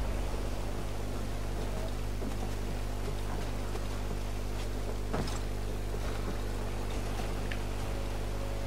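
Hands grip and scrape against wooden boards while climbing.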